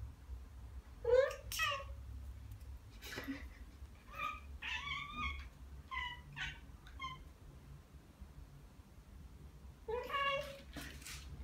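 Cats meow and chirp repeatedly up close.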